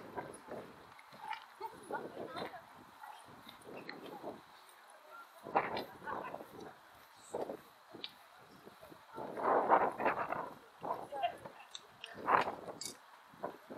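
Men and women talk nearby in the open air.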